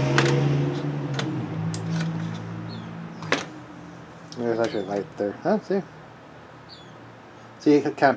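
A small plastic connector clicks into place.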